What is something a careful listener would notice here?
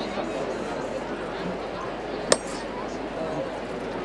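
A metal knocker raps sharply on wood.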